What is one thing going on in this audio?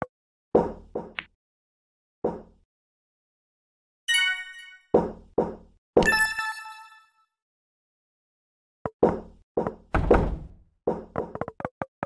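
Game sound effects pop and thud in quick bursts.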